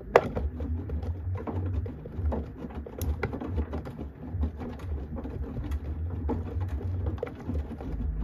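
A washing machine drum turns with a low rumble.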